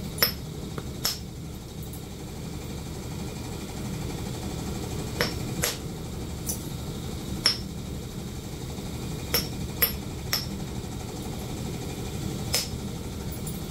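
A rotary brush scrubs and scratches against a hard surface.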